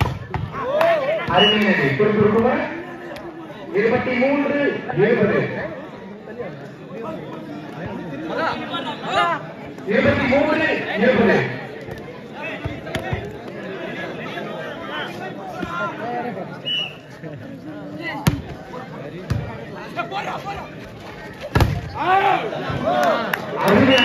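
A man commentates loudly and excitedly over a loudspeaker.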